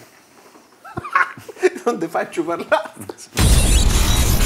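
Men laugh loudly.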